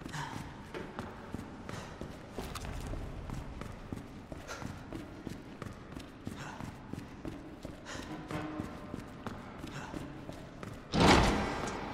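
Footsteps walk steadily on a hard concrete floor.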